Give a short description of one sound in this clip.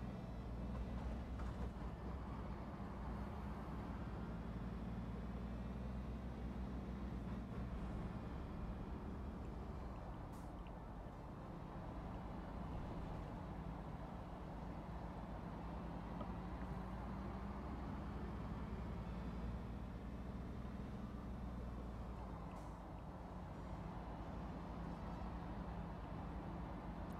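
A heavy truck engine rumbles steadily, rising and falling as it speeds up and slows.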